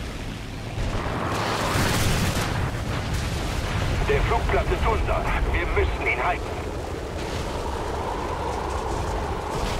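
A fiery crash roars and crackles.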